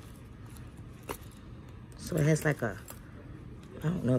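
A snap button clicks open on a small leather wallet.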